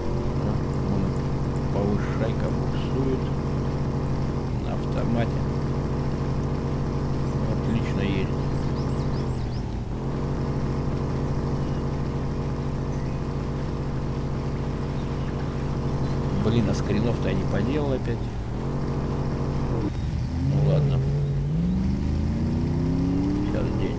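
Water splashes and churns around a car wading through a river.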